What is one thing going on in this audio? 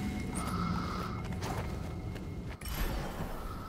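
Blades swish and clash in a fight.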